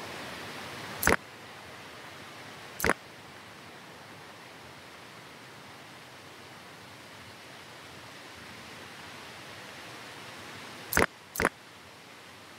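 Short sharp clicks sound a few times.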